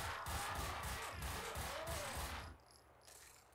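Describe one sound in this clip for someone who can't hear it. Pistol shots fire rapidly, one after another.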